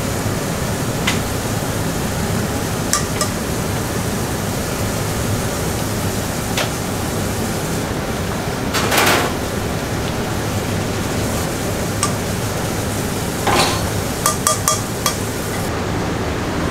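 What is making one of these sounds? Broth pours and splashes through a strainer into a bubbling pot.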